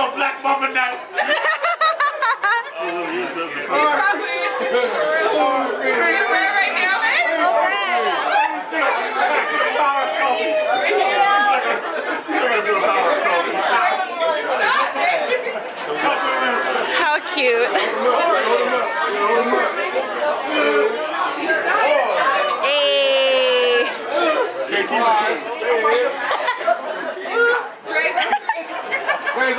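A group of men and women talk, laugh and cheer loudly and close by, outdoors.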